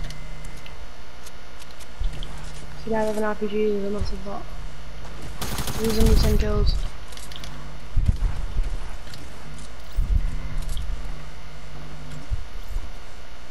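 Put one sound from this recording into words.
Footsteps patter quickly on the ground.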